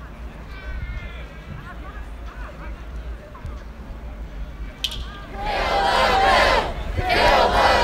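People talk in the distance across an open square.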